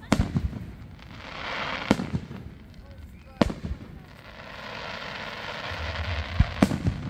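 Fireworks crackle and fizzle after each burst.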